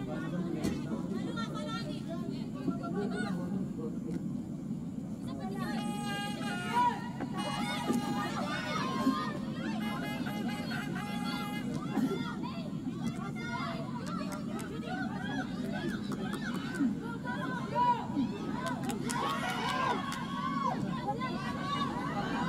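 A football thuds off a player's boot.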